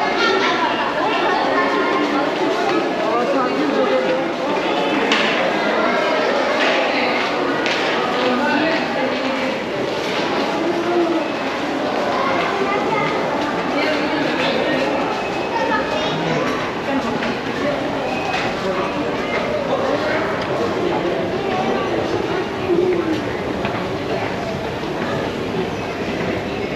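A crowd of people chatter around in an echoing indoor hall.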